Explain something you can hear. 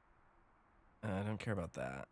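A man speaks close into a microphone.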